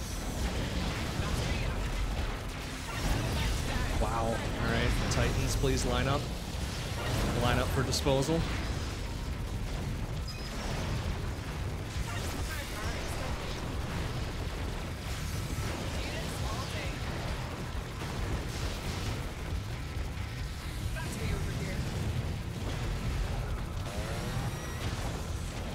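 Video game gunfire and explosions rattle steadily.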